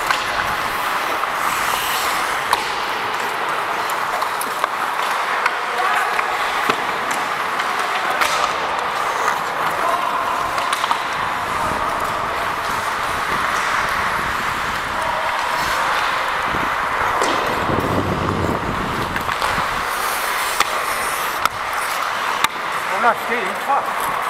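Sounds echo around a large indoor rink.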